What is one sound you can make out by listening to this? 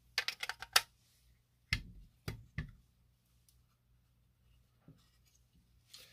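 Plastic parts knock and click as they are handled.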